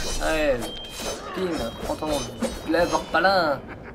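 A blade swishes through the air in quick slashes.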